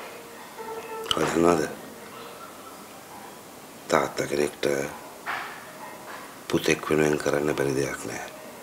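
A man speaks in a low, strained voice, close by.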